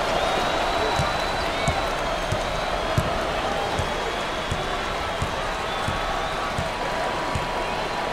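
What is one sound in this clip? A basketball bounces with dull, regular thumps on the floor.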